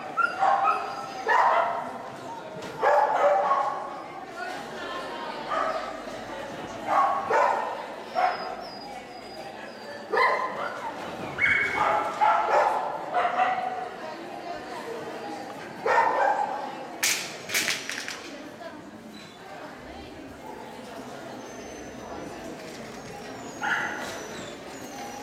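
A woman calls out sharp commands to a dog in a large echoing hall.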